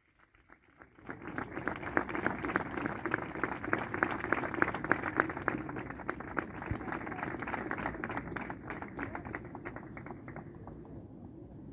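A large crowd applauds outdoors, then the clapping slowly dies away.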